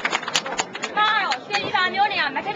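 A woman speaks loudly close by.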